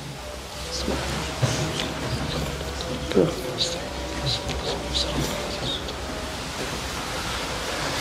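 A man murmurs a prayer softly, close by.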